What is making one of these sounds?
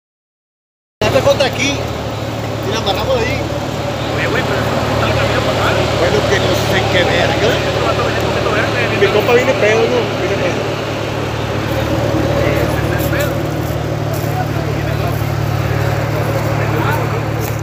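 An engine rumbles steadily as a truck climbs over rough ground.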